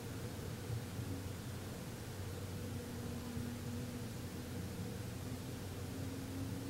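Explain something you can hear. A man hums a low, steady note close by.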